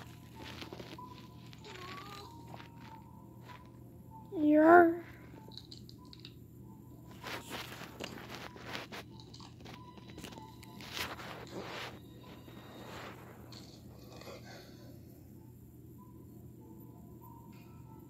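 A fingertip taps softly on a touchscreen.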